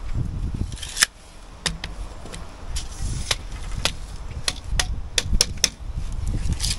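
A trowel taps on a brick several times.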